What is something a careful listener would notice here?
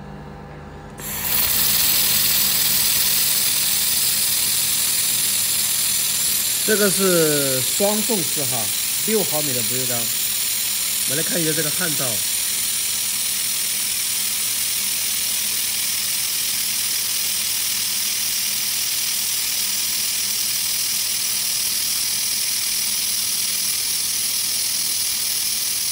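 A handheld welding torch hisses steadily.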